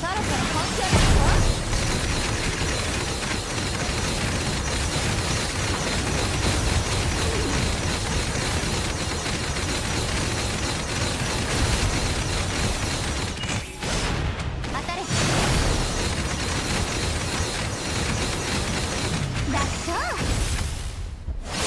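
Sword slashes and impacts clash rapidly in a game battle.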